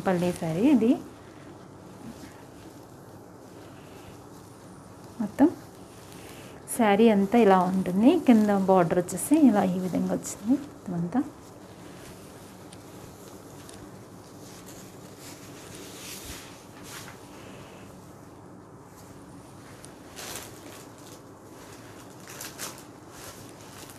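Silk cloth rustles as a woman handles it.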